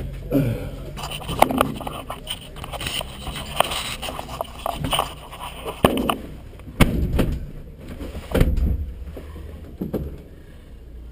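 Knocks and rustles sound close by as a driver shifts around in the seat.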